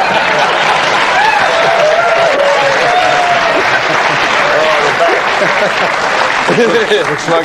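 A man laughs heartily near a microphone.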